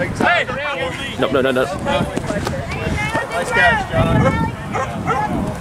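Several young men shout and cheer excitedly outdoors.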